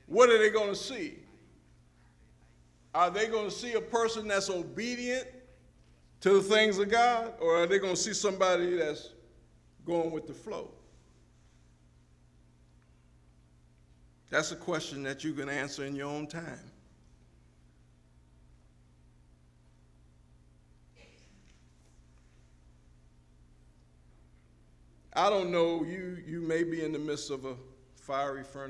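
A man speaks through a microphone in a large hall, in bursts with long pauses.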